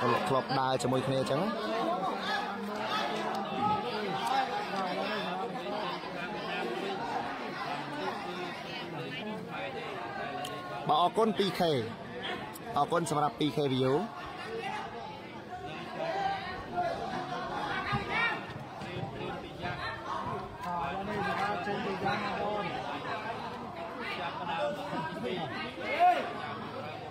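A large crowd chatters and murmurs outdoors throughout.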